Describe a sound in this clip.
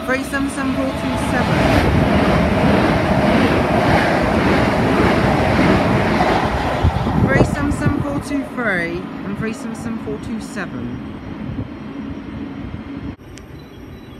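An electric multiple-unit passenger train rumbles past, its wheels clattering over the rails.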